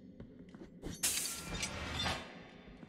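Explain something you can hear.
A sword swishes through the air with a sharp whoosh.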